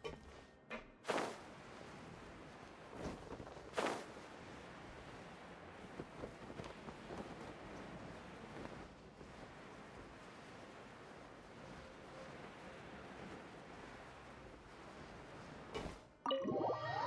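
Wind rushes steadily past a glider in flight.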